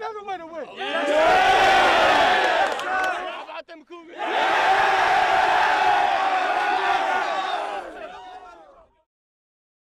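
A crowd of young men cheers and shouts loudly.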